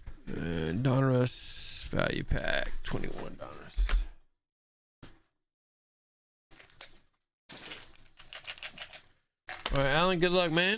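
Hands handle and rustle a foil card pack and a cardboard box.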